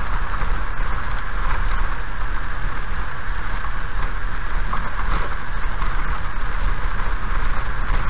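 Tyres rumble over a wet gravel road.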